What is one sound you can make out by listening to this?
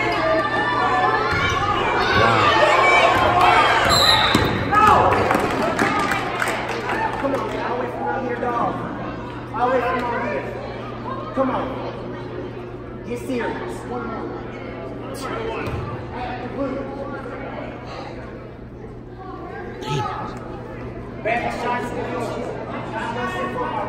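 A crowd of spectators cheers and shouts in an echoing gym.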